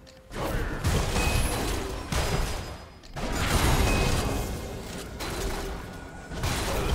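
Game spell blasts whoosh and crackle in a fast battle.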